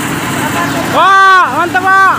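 A truck's air horn blares loudly.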